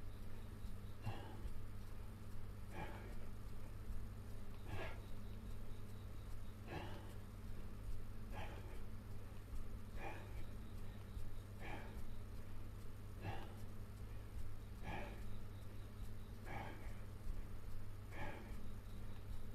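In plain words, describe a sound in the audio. A man exhales sharply in a steady rhythm, close by.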